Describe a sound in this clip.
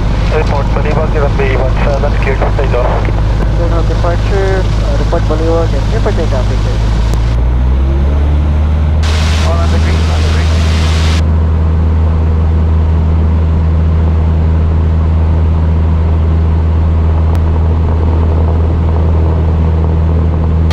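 A small propeller plane's engine drones loudly and steadily, then revs up to a deeper, stronger roar.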